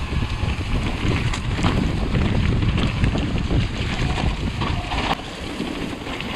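Wind buffets a microphone loudly.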